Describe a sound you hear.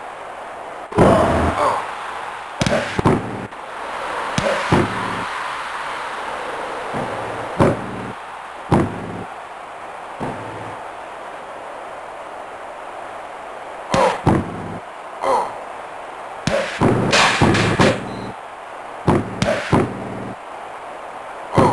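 Punches and slams land with sharp thuds.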